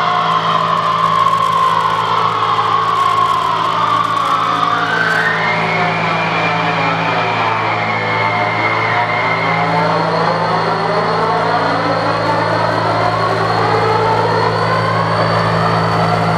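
Electronic music with sweeping, gliding tones drones steadily through loudspeakers in a room.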